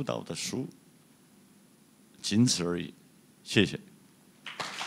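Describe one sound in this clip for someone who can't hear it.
A man speaks calmly through a microphone in a large room, in short phrases.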